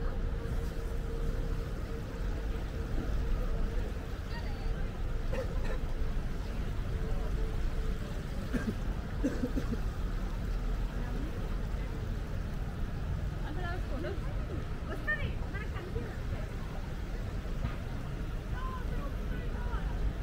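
Wind rumbles steadily outdoors.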